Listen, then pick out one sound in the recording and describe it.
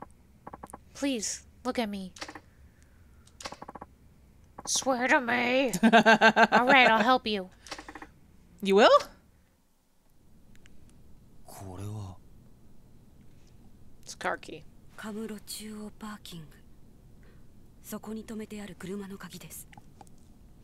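A young woman in a game speaks softly.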